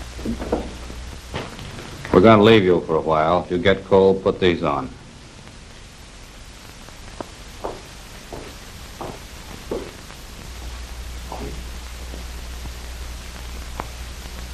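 Footsteps knock on a hard floor.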